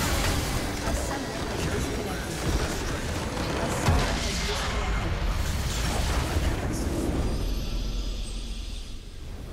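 Spell effects and battle noises crash and boom in a video game fight.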